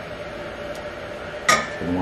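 A wooden spoon scrapes food into a metal pot.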